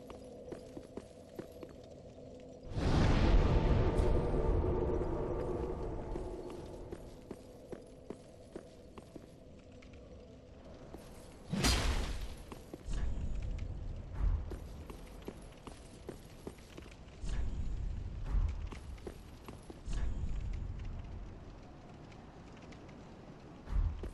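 Armoured footsteps clank on stone as a warrior runs.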